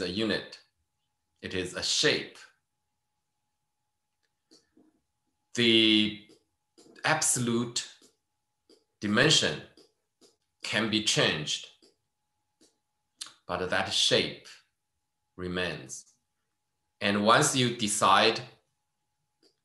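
A man speaks calmly in short phrases over an online call microphone.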